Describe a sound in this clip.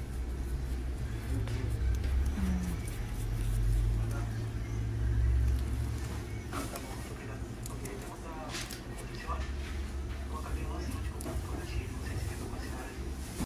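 Rubber gloves rub softly against skin.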